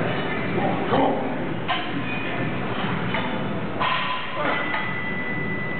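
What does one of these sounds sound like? Weight plates clank as a cable machine is pulled.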